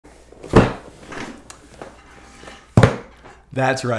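A cardboard box thumps on a table.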